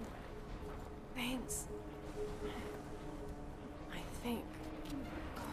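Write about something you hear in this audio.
A young woman speaks weakly and breathlessly.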